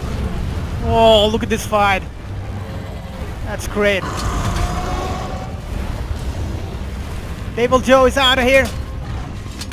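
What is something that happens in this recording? A huge winged beast roars and shrieks.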